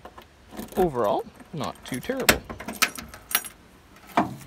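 A key turns in a lock with metallic clicks.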